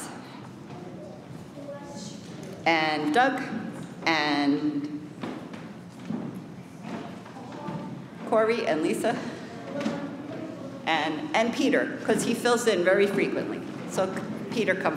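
A woman speaks into a microphone over a loudspeaker in an echoing hall.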